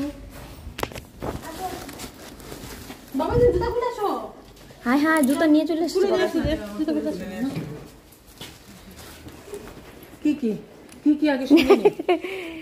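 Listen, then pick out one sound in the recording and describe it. A plastic bag rustles close by.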